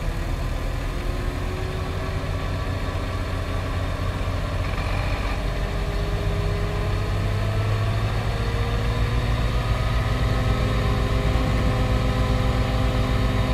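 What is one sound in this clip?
A dump truck's hydraulics whine as the bed tilts up.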